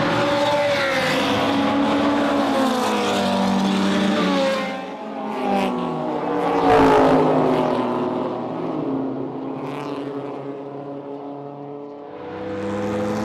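A racing car engine roars past at high speed.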